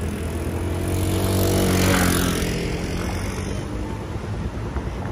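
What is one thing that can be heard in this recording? Motorcycle engines idle nearby with a low rumble.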